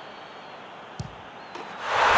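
A ball is struck with a sharp thud.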